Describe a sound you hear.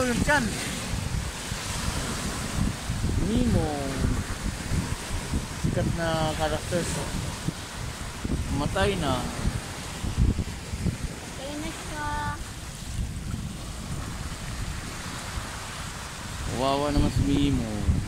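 Small waves wash over the sand.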